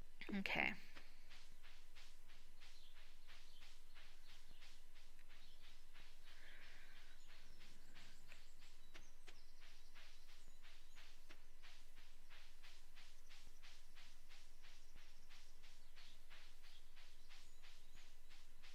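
Quick footsteps pad steadily across grass.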